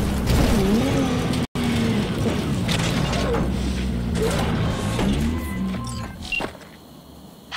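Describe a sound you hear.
A car engine rumbles as the car drives over rough ground.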